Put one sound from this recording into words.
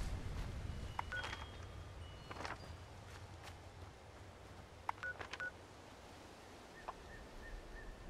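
Short menu clicks and beeps sound.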